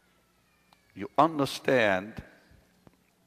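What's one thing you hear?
A man speaks slowly and with feeling into a microphone.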